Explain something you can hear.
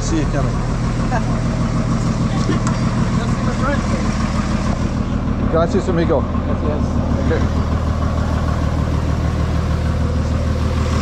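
People chatter in the background outdoors.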